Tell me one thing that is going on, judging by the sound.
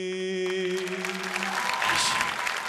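A young man sings into a microphone on a loud sound system.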